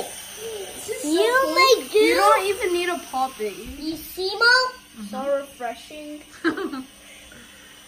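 A young boy speaks with animation close by.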